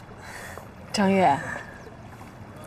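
A young woman answers warmly, close by.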